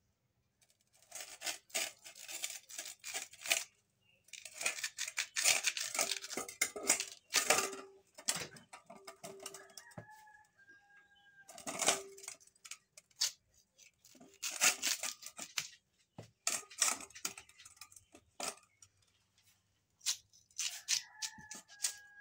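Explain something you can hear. A shell scrapes roughly against the skin of a guava.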